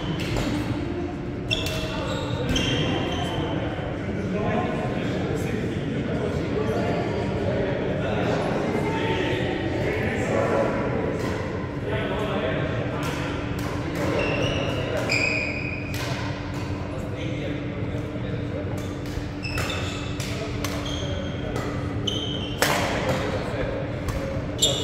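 Adult men and women chat and call out around the hall.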